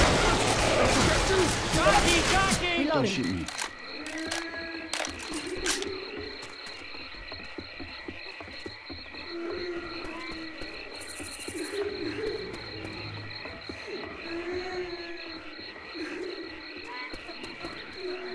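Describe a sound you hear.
Footsteps crunch softly on damp ground.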